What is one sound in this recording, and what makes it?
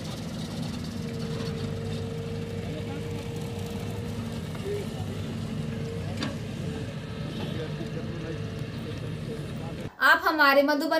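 Engines of trucks and heavy machinery rumble steadily outdoors.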